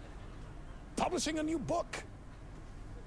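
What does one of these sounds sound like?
A man answers cheerfully with animation.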